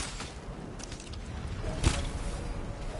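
A bow twangs as an arrow is loosed.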